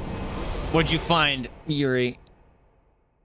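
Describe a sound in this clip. A man speaks with animation into a close microphone, his voice rising into a sung, wavering call.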